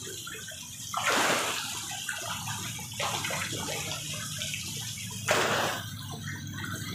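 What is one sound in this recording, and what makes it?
Large fish thrash and splash loudly at the water's surface.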